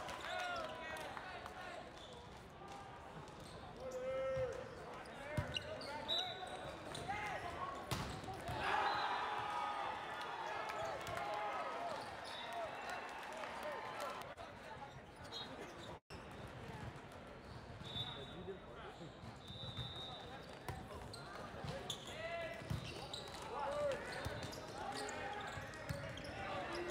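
Young men shout and cheer, echoing in a large hall.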